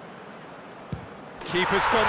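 A football is struck hard.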